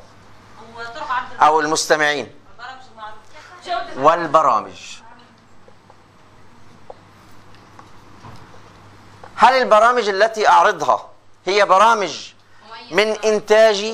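A man lectures with animation, close by.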